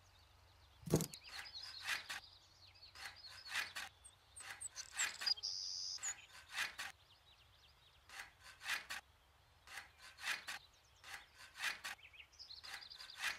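A trowel scrapes across a wall in short strokes.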